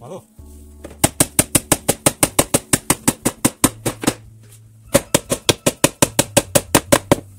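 A hammer taps a nail into wood in quick, even blows.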